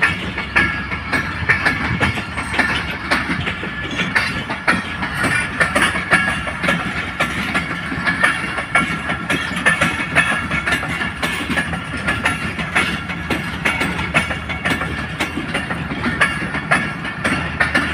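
A passenger train rumbles past close by.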